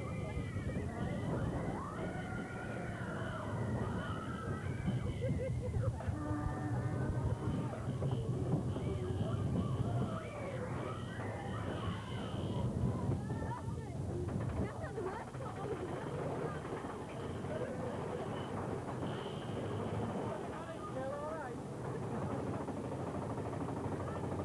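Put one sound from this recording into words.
A roller coaster train rumbles and clatters along its track.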